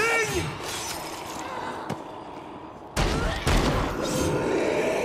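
A blade swishes and strikes flesh.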